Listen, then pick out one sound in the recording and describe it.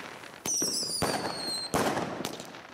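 A firework whistles as it rises.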